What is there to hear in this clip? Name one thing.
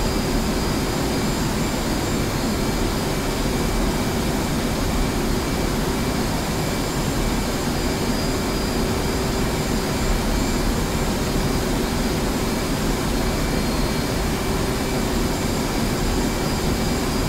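A jet engine roars steadily inside a cockpit.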